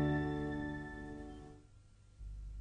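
A man sings over music and fades out.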